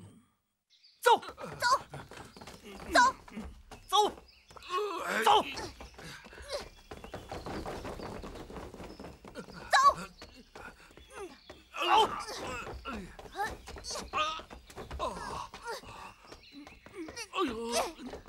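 Men shout and grunt while fighting.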